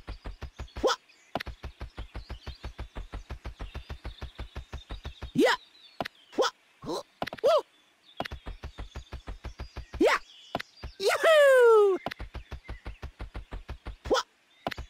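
A cartoon character lets out short high-pitched yelps as it jumps.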